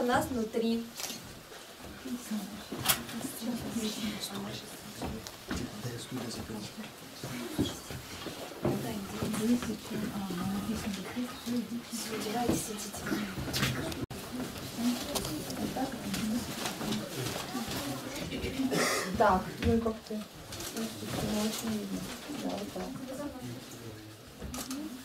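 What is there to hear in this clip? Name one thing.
Young people talk and recite lines in a room.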